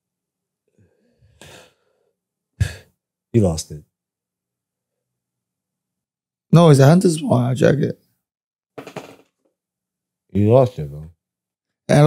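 A man speaks casually into a close microphone, with pauses.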